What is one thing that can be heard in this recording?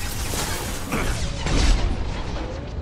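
A rifle fires a single heavy shot.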